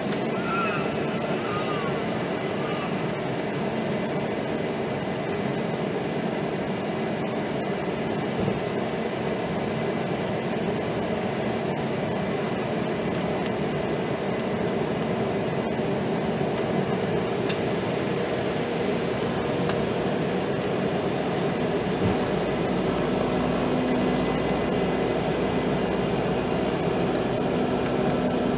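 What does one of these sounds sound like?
An aircraft engine drones steadily from inside the cabin.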